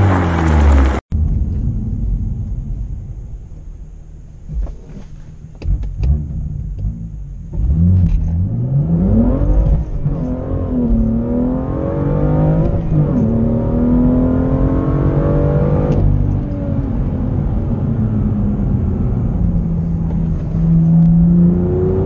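A car engine revs and accelerates from inside the car.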